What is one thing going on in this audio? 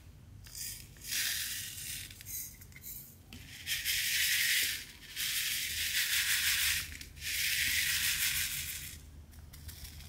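Fingers rub and brush over a surface of tiny plastic beads.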